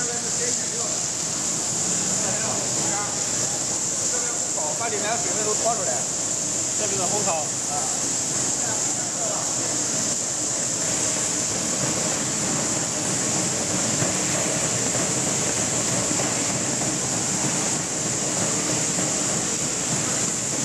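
Factory machinery runs with a loud steady whirring hum.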